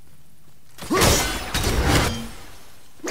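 An axe whooshes hard through the air.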